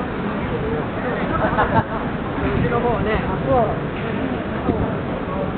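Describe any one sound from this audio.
Men and women chatter nearby as they walk past.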